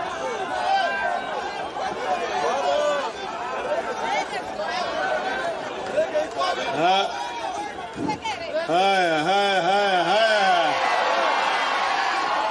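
A crowd of people chatters and calls out close by.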